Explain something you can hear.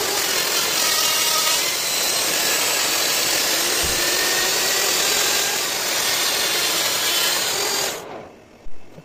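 A grinding stone hisses and rasps against spinning metal.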